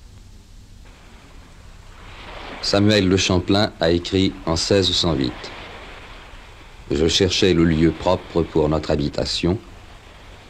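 Small waves lap gently against a pebbly shore.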